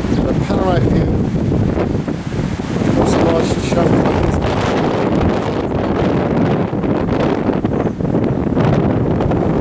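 Wind buffets strongly across a high open outdoor spot.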